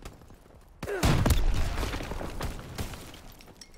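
A vehicle explodes with a loud boom.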